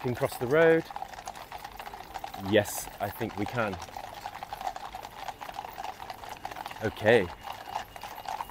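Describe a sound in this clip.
Horses' hooves clop on a hard road.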